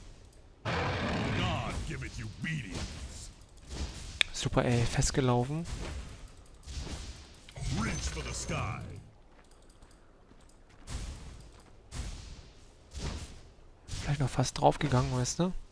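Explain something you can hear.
Game spells crackle and hit with sharp bursts.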